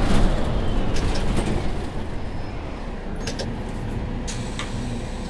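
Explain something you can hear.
A city bus slows down and the engine noise drops.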